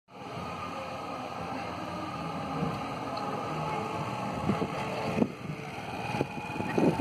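A motorcycle engine idles and rumbles nearby.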